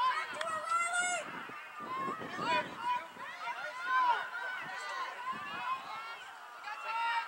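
Young girls shout and call out across an open field outdoors.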